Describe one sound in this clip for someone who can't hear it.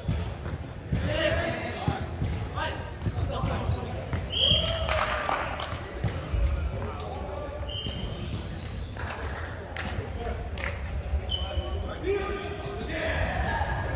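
Young men call out and shout in a large echoing hall.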